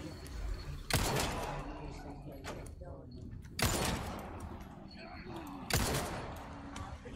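Gunshots ring out sharply several times.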